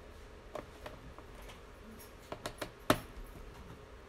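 Plastic parts click and tap sharply.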